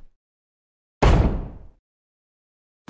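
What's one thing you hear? A heavy wooden door slams shut.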